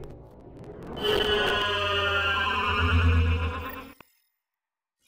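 A spaceship's engines roar deeply as it flies past.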